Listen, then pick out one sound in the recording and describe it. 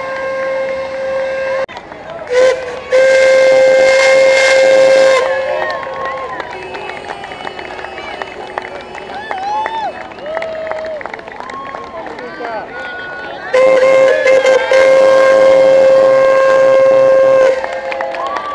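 A steam whistle blows in long, loud, steady blasts.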